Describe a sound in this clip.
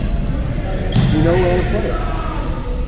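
Young people call out across a large echoing hall.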